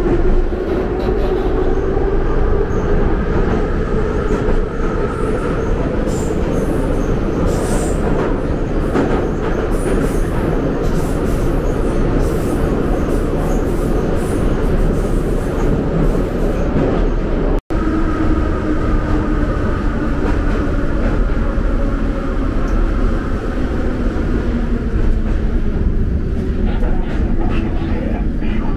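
Train wheels squeal with a rising and falling whine.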